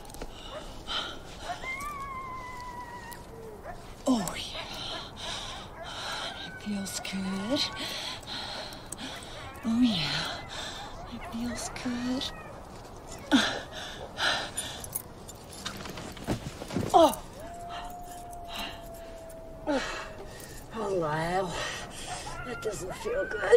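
A woman talks close by with a strained, breathy voice.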